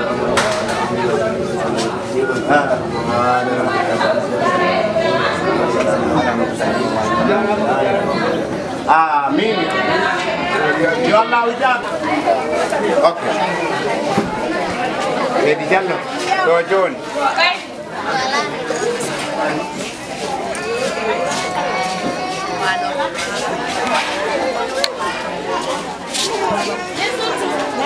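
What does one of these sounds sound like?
Many women and men chatter together outdoors nearby.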